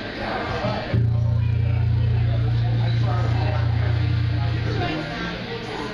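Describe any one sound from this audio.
A loud low bass note drones steadily.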